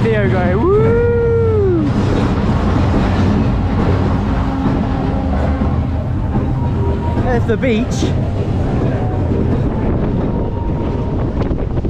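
A small ride train rumbles and rattles along its track.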